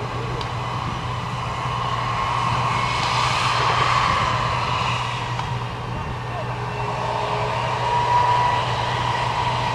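Tank tracks clank and squeal over the soil.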